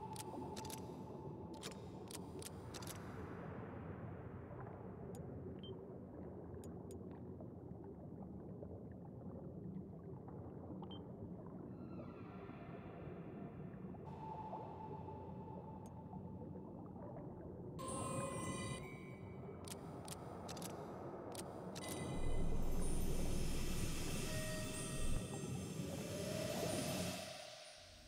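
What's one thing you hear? Calm video game music plays.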